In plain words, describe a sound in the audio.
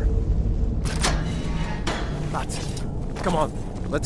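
A heavy iron gate creaks open.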